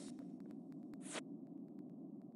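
A game's download panel opens with a click.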